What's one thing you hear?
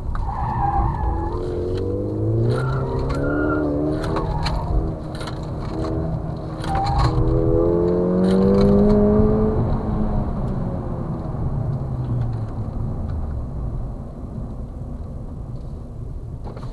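A car engine revs hard and climbs through the gears, heard from inside the car.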